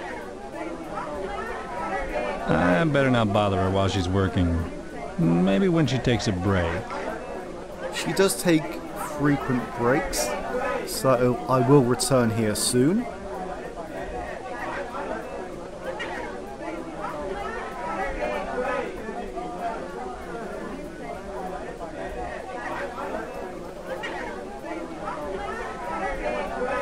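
A band plays lively music.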